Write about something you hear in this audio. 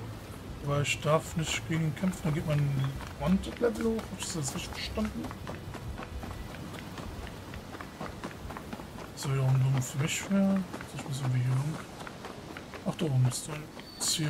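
Quick footsteps run over packed earth.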